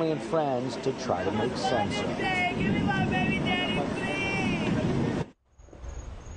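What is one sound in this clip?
Several women talk excitedly over one another.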